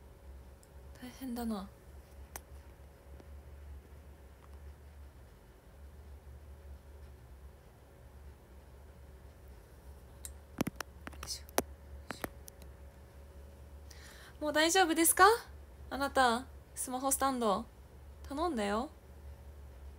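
A young woman speaks close to a microphone, with animation, in short bursts.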